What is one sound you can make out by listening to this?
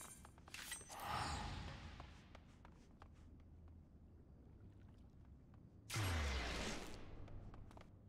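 A magic spell whooshes and shimmers as it is cast.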